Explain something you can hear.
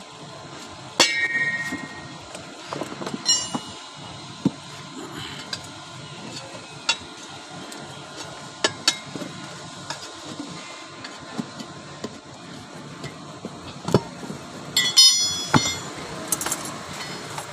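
A metal tyre lever clanks and scrapes against a steel wheel rim.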